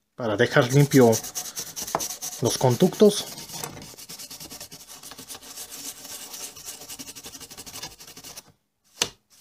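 A stiff brush scrubs against a circuit board.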